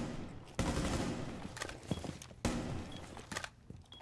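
A rifle is reloaded with sharp metallic clicks.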